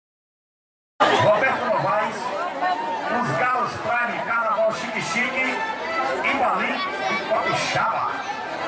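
A band plays live music through loudspeakers.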